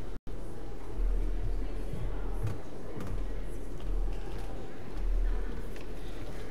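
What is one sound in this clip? Footsteps cross a wooden floor.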